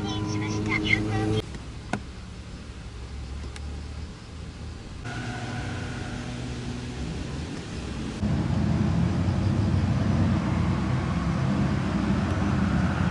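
A car engine hums as a car drives past.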